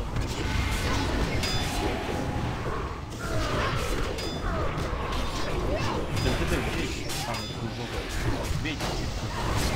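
Frost spells burst with icy crashes.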